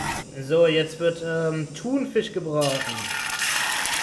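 Sauce pours into a pan and sizzles.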